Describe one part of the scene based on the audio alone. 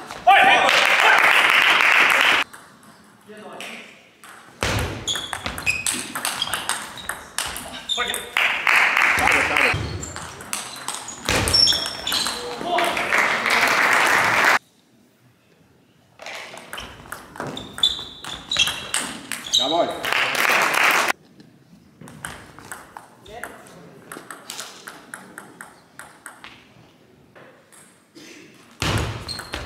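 A ping-pong ball clicks rapidly back and forth on paddles and a table.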